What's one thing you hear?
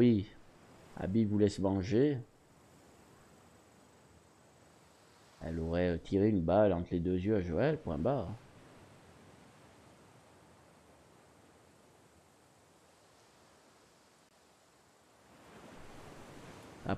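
Waves break gently on a shore.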